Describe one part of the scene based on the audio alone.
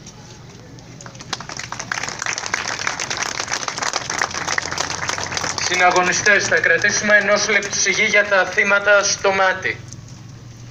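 A man's voice blares loudly through loudspeakers, echoing outdoors.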